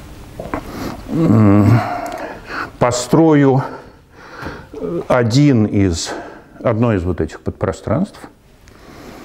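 An elderly man speaks calmly as if lecturing, in an echoing hall.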